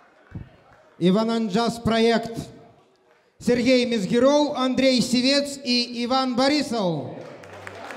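A man sings loudly into a microphone through loudspeakers.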